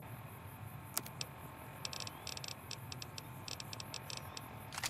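A handheld device clicks and beeps softly.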